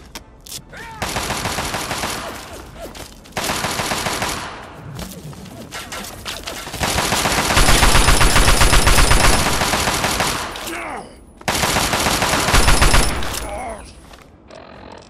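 An automatic rifle fires rapid bursts of loud shots.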